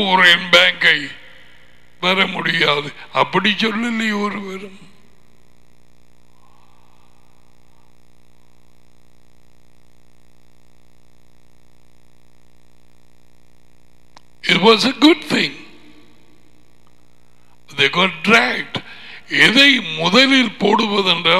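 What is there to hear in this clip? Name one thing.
A middle-aged man talks with animation close to a headset microphone, pausing in between.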